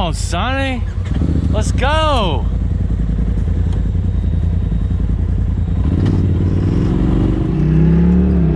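A side-by-side engine idles with a low rumble.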